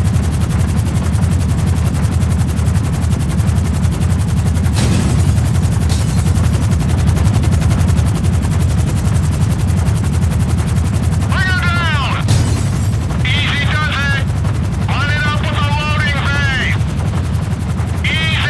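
A helicopter's engine and rotor drone steadily, low and loud.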